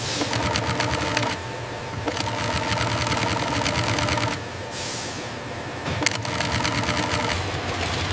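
A sewing machine stitches steadily.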